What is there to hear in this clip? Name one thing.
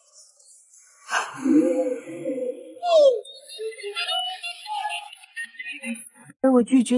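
A young man shouts with excitement nearby.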